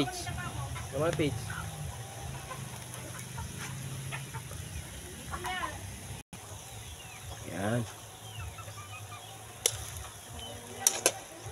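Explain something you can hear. Onions and meat sizzle in a hot frying pan.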